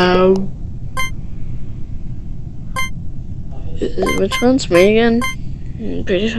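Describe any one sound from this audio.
Short electronic blips sound.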